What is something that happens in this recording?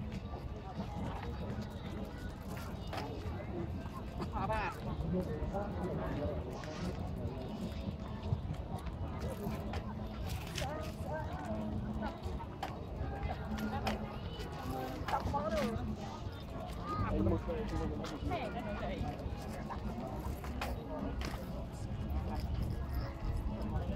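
Several young people chatter nearby in a crowd.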